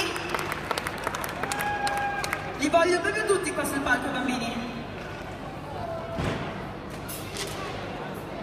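A woman sings loudly through loudspeakers.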